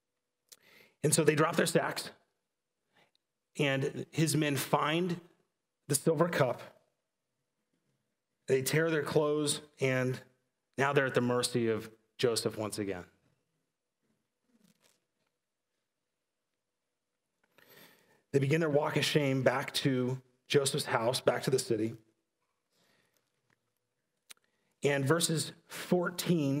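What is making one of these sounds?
A man speaks calmly through a microphone in short phrases with pauses.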